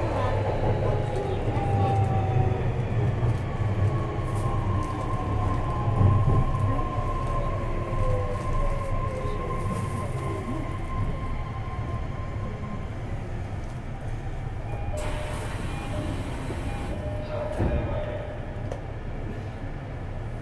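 A train's motor hums steadily while it stands at the platform.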